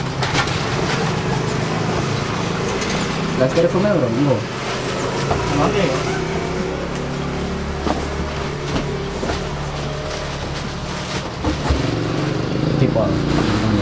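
Plastic sheeting crinkles and rustles.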